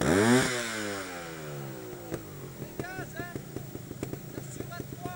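A motorcycle engine revs hard, then drops to a low, popping idle.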